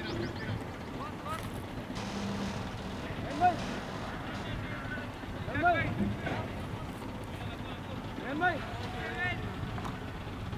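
Young men call out to each other outdoors, some distance away.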